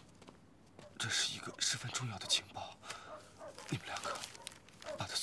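A man speaks firmly indoors.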